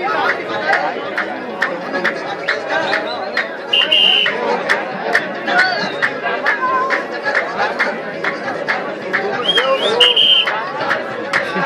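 A large crowd of men murmurs and chatters outdoors.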